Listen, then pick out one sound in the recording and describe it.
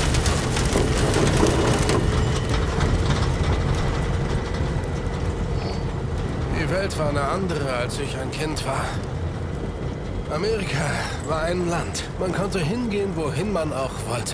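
A truck engine rumbles steadily outdoors in wind.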